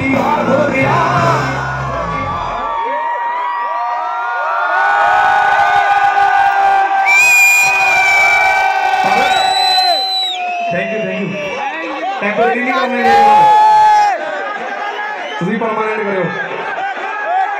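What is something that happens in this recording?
A man sings loudly through loudspeakers at a live concert.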